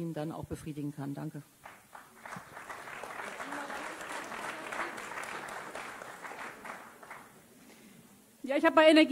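A woman speaks calmly through a microphone in an echoing hall.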